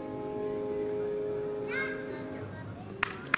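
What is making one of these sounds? A piano plays a final sustained chord that rings out.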